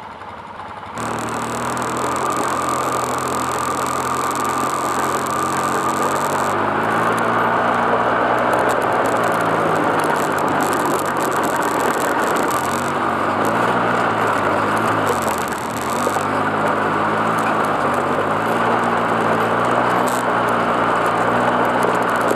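An all-terrain vehicle engine runs close by, its pitch rising and falling as it revs.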